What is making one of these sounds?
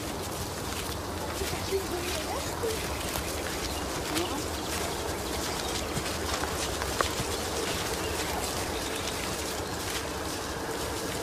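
Footsteps rustle and crunch through dry leaves.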